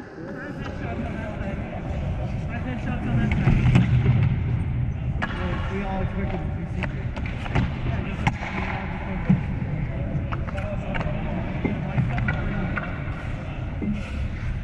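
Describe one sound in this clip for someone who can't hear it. Skates scrape and hiss across the ice nearby.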